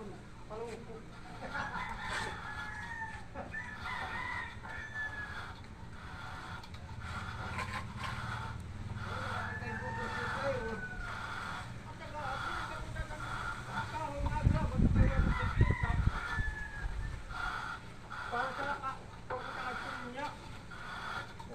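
A trowel scrapes wet plaster against a wall.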